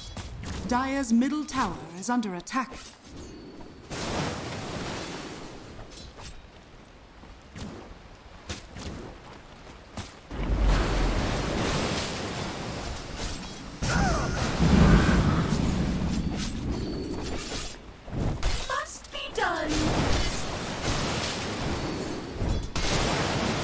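Spell effects and weapon hits clash in a game battle.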